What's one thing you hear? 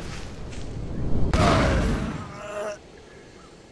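A loud blast bursts and rumbles briefly.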